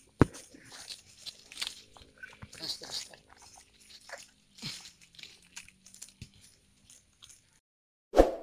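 Leaves rustle and twigs crackle as hands move through tree branches.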